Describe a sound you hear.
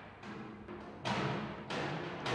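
A hammer strikes with ringing blows.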